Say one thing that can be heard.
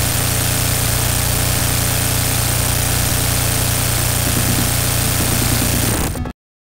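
Rapid explosions boom and crackle without pause.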